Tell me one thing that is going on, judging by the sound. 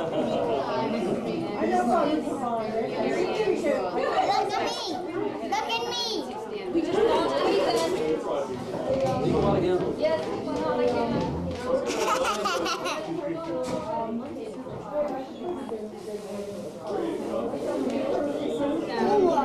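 Many adults chat at once.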